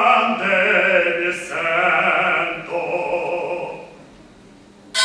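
A man sings in a strong, full voice.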